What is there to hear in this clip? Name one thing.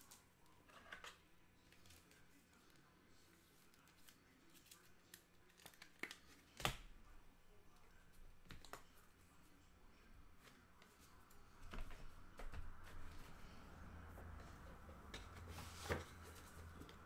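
Packs rustle and knock against a table.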